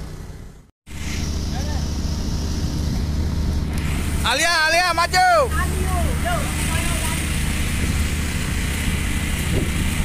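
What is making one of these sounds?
Water gushes hard from a fire hose.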